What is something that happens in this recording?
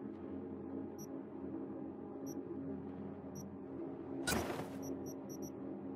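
Short, high electronic beeps sound now and then, quickly at the end.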